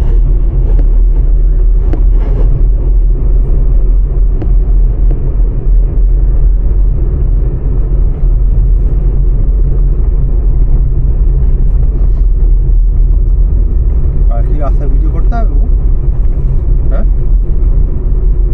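A car engine hums steadily with road rumble while driving.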